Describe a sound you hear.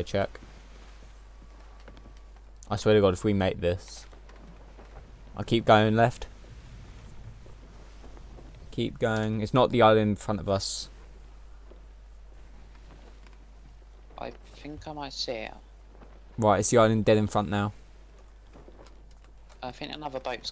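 A man talks into a microphone in short bursts, with pauses between.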